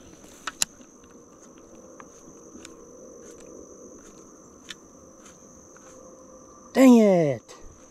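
A fishing reel clicks softly as its line is wound in.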